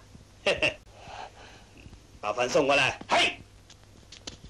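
A man speaks sternly and loudly.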